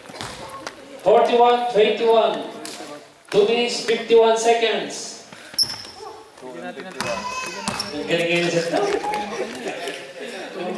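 Men talk and call out nearby in a large echoing hall.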